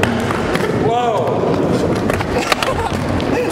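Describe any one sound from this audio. Skateboard wheels roll and rumble over a wooden ramp.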